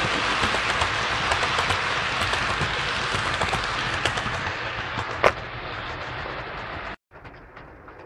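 A model train rattles past close by on its tracks.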